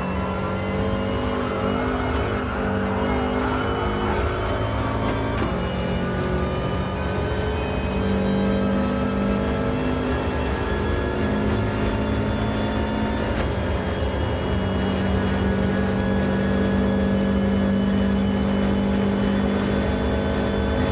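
A car engine drones at high revs, dropping briefly as it shifts up through the gears.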